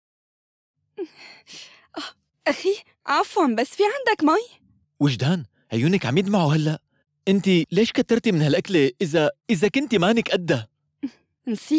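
A young man speaks with animation up close.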